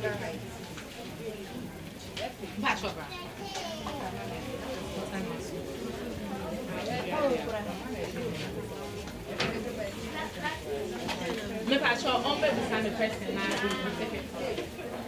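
Several women and men talk over one another nearby in a crowded room.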